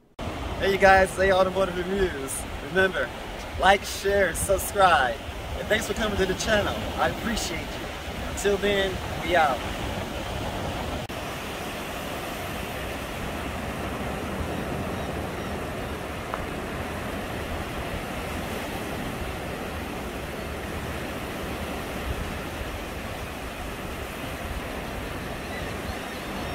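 Waves wash gently onto the shore.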